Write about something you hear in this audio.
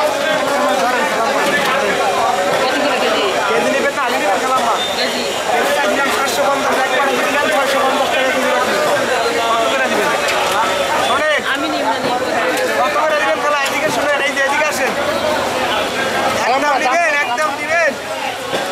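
Several people talk loudly at once close by, outdoors in a busy crowd.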